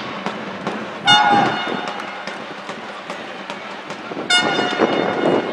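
A referee's whistle blows two short, shrill blasts.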